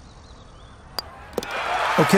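A putter taps a golf ball.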